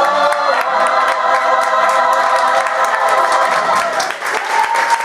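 A large choir of young men and women sings a loud, held chord in an echoing hall.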